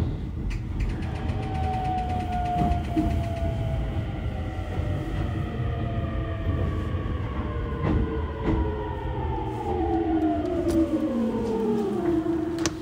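Train wheels squeal on the rails as the train slows down.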